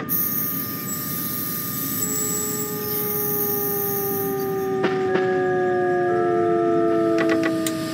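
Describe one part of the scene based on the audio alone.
A train's electric motors whine steadily, slowly falling in pitch.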